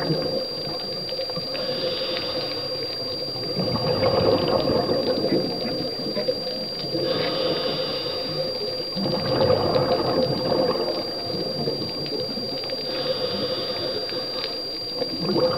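Water gurgles and rushes in a muffled way underwater, swelling and easing in slow waves.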